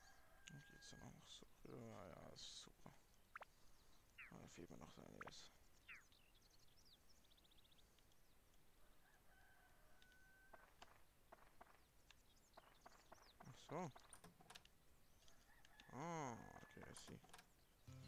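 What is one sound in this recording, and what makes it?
A young man speaks into a headset microphone, casually and close.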